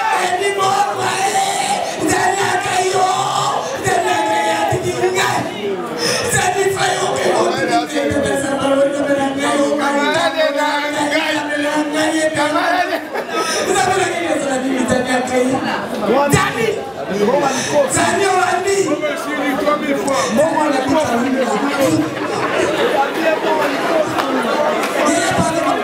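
A young man sings loudly into a microphone over a sound system.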